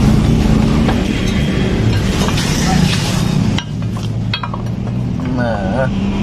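Metal tools clink and scrape against each other.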